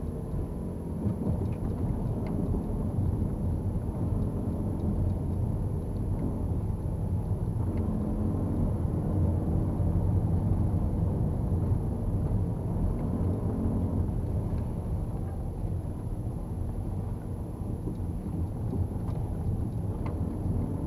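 Tyres rumble over cobblestones.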